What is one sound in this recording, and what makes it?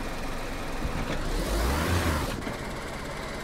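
A vehicle bumps into metal with a loud scraping crash.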